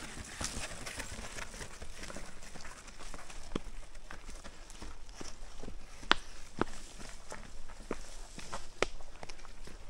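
Bicycle tyres rattle and bump over rocky ground.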